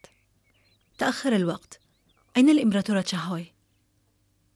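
A young woman speaks in surprise nearby.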